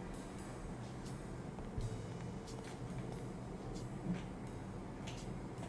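Footsteps tread across a rooftop.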